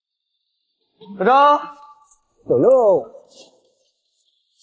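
A little girl speaks brightly, close by.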